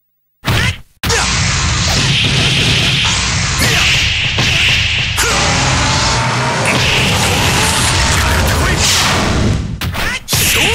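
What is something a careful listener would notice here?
Energy blasts roar and crackle.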